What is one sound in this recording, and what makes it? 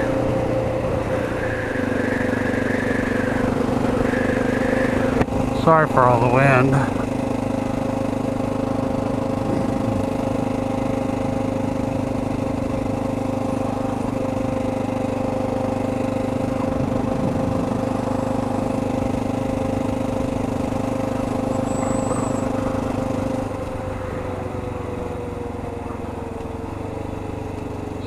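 A motorcycle engine hums steadily, then eases off near the end.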